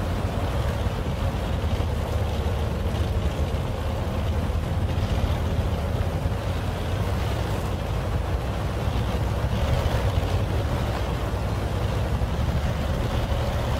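A heavy tank engine rumbles steadily as the tank drives over rough ground.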